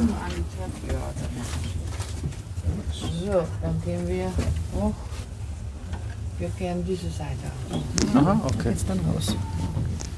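A woman talks nearby in a calm voice.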